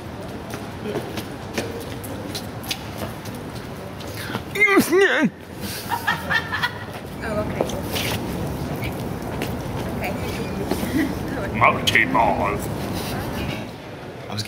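Footsteps tap on hard paving outdoors.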